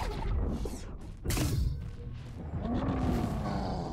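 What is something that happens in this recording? A magic spell crackles and whooshes.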